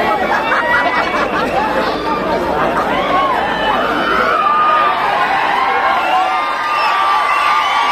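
A crowd of young men whistles shrilly.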